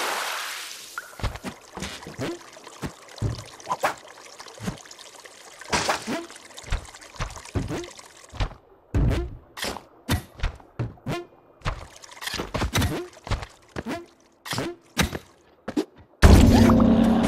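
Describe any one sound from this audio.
Short video game sound effects pop and thud as a small character runs and jumps.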